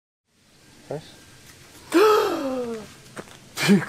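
A man groans and exclaims in dismay close by.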